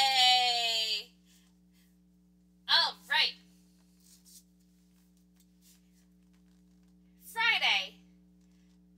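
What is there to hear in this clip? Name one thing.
A young woman speaks with animation close to a microphone, in short bursts with pauses.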